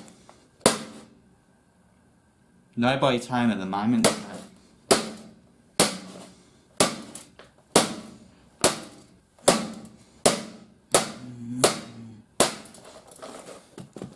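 A hard plastic case clicks and snaps sharply at a steady pace, each click ringing briefly.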